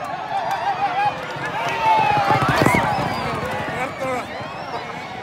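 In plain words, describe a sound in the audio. A crowd cheers loudly as horses race past.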